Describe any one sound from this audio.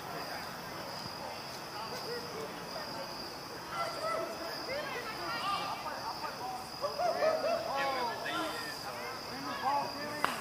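Several men chat and call out at a distance outdoors.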